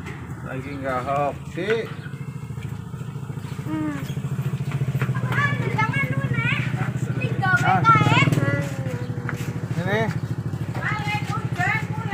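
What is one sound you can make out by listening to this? Young children talk and call out nearby.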